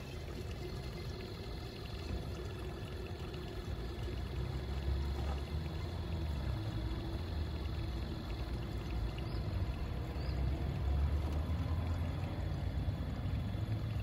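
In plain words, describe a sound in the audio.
Fluid gurgles through a hose into a bottle.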